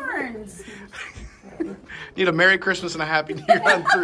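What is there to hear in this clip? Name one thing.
Women laugh and speak cheerfully together.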